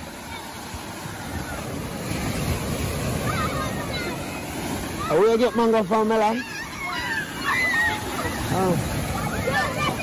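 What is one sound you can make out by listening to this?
Children shout and squeal while playing in the surf.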